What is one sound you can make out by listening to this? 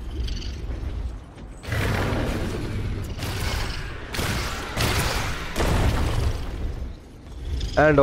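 Wind rushes loudly past a flying dragon.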